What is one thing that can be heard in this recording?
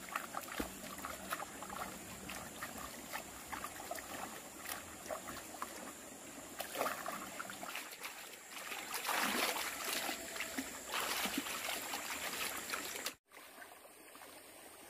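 Water splashes as hands scrub and rinse in a shallow stream.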